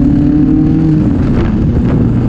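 A motorcycle engine shifts gear, dropping in pitch.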